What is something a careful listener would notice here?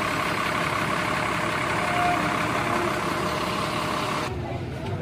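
A bus engine idles with a low rumble.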